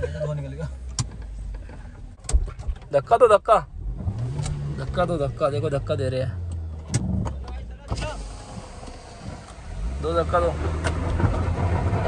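A car engine rumbles low and steady from inside the car.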